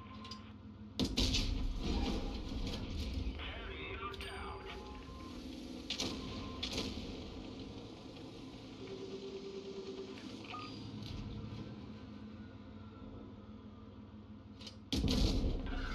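A tank cannon fires with a loud, sudden boom.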